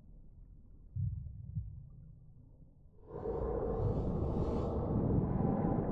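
Rocks crash with a deep rumble that swells into a loud roar.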